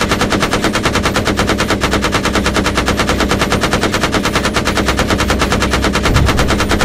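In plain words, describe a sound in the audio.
A machine gun fires in rapid, steady bursts.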